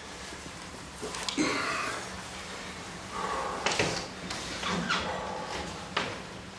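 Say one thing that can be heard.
Footsteps thud slowly down wooden stairs.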